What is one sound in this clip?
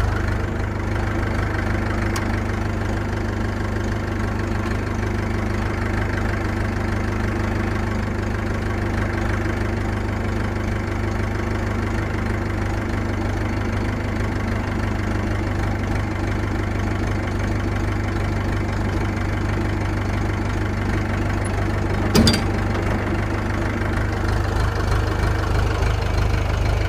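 A tractor engine drones steadily up close.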